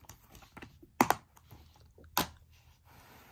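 A plastic disc case clicks and rattles as a hand handles it.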